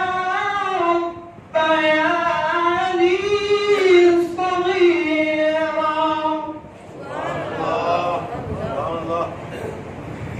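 A man chants in a long, melodic voice through a microphone, in an echoing room.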